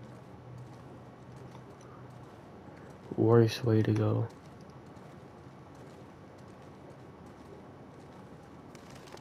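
Footsteps crunch softly on snow.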